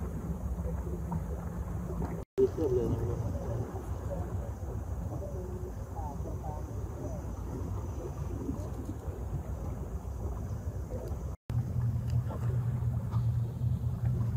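A boat engine rumbles steadily close by.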